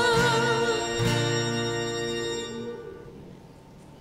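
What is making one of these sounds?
Young women sing together through microphones.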